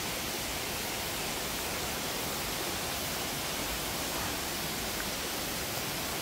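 A stream rushes steadily nearby.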